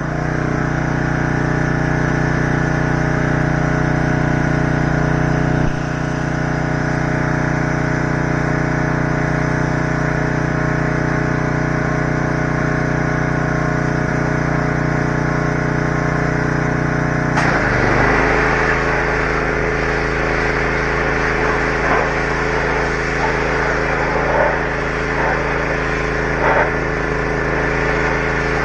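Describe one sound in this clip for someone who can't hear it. Water sprays from a hose and hisses.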